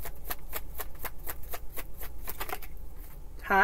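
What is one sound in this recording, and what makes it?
Cards riffle and shuffle rapidly.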